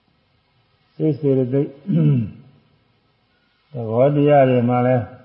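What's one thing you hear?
An elderly man speaks slowly and calmly, close to a microphone.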